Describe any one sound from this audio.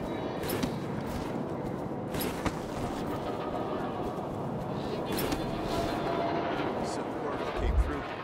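Footsteps tread steadily up stone steps.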